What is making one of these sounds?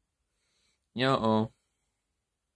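A young man lets out a short, low groan close by.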